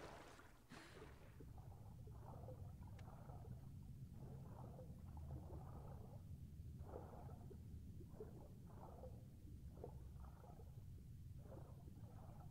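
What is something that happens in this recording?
Water swooshes, muffled and rhythmic, as a swimmer strokes underwater.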